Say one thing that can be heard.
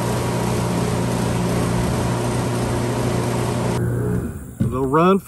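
Large fans hum and whir steadily.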